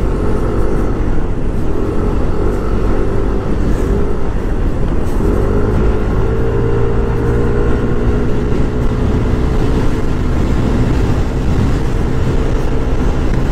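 A motorcycle engine hums steadily close by, its pitch rising as it speeds up.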